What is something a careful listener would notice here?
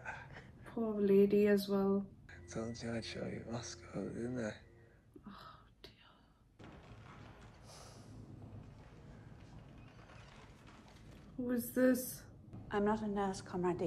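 A young woman talks close to a microphone, sounding emotional.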